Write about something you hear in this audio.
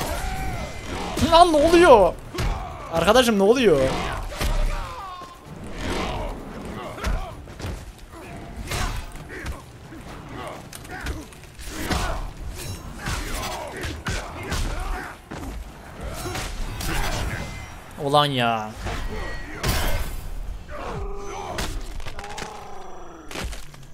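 Punches and kicks thud and crack in quick succession.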